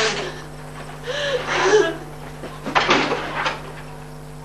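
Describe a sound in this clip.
A young woman gasps and speaks breathlessly.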